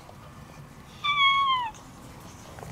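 A cat gives a hoarse meow close by.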